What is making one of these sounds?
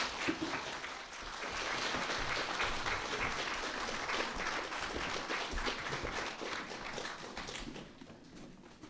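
An audience applauds in a large hall, and the clapping dies down.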